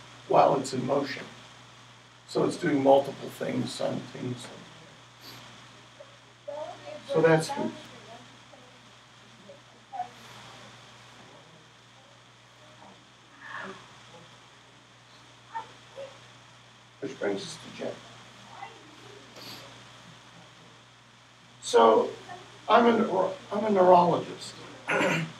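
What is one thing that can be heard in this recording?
An elderly man talks to a small group in bursts, with pauses.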